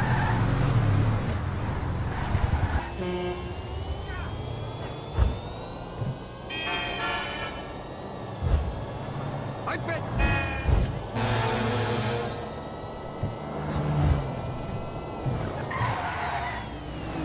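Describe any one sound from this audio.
A car engine roars steadily as the car speeds along.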